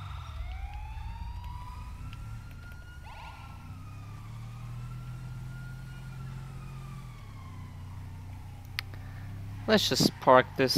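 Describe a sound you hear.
A car engine hums and revs as the car drives along.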